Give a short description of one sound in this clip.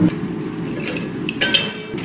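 Dishes clatter in a dishwasher rack.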